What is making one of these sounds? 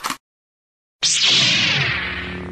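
A lightsaber ignites with a loud whoosh and settles into a humming buzz.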